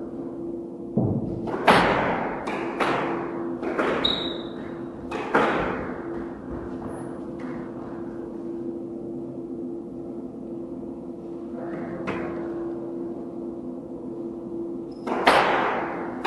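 A squash ball smacks loudly against the walls, echoing in a hard room.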